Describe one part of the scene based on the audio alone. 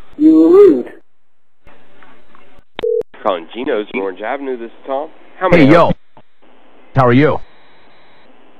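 A man speaks over a phone line.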